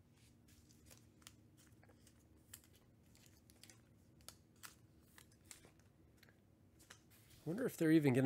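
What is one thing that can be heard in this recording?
Stiff cards slide and tap against each other.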